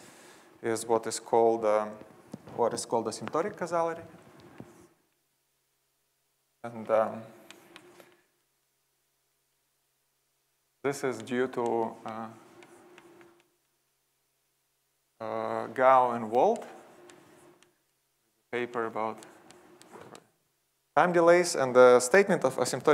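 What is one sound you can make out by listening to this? A man lectures calmly through a microphone in a large hall, in short bursts with pauses.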